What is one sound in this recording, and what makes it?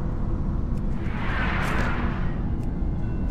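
A magic spell bursts with a bright whoosh.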